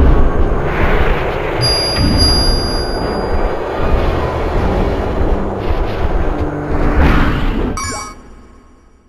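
Electronic game fight sounds thud and clash loudly.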